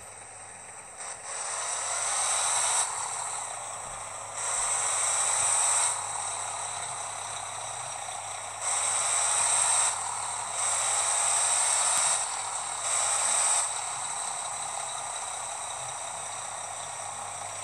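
A truck engine hums and revs up in bursts as it picks up speed.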